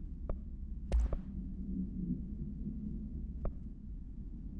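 Short menu clicks tick now and then.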